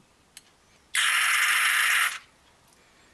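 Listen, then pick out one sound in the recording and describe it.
A spray can hisses in a short, steady burst.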